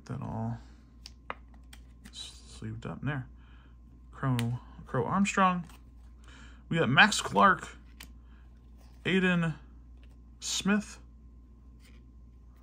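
Stiff cards and plastic sleeves click and rustle softly between fingers.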